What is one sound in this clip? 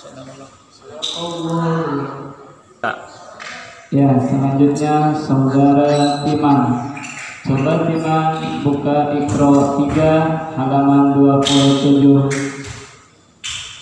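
A young man chants melodically into a microphone.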